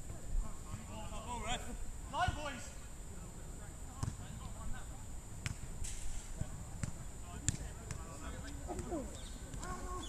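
Young men shout to each other outdoors at a distance.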